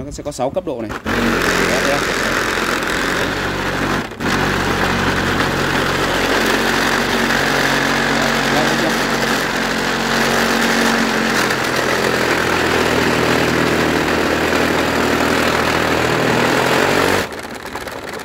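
A massage gun motor whirs and buzzes loudly and steadily, then stops.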